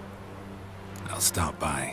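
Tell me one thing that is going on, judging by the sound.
A man answers in a low, gruff voice, close by.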